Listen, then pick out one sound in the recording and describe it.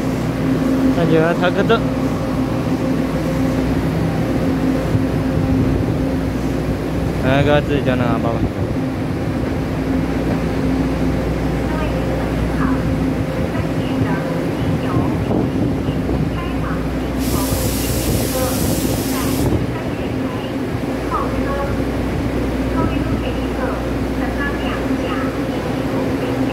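A train rumbles along the rails close by and slowly pulls away into the distance.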